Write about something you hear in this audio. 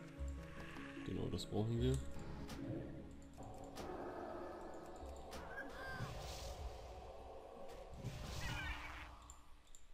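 Magic spells whoosh and strike repeatedly in a fantasy game battle.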